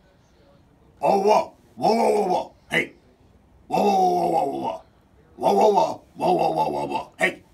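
A young man speaks with animation into a microphone, close by.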